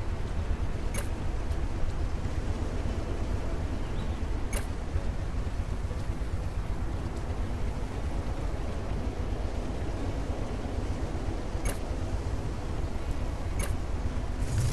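Short soft clicks sound now and then as items are moved between boxes.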